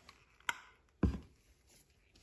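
A plastic bottle is set down on a table with a soft knock.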